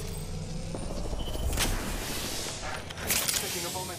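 An electric device charges with a crackling hum.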